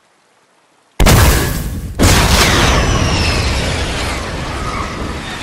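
A rocket roars in flight.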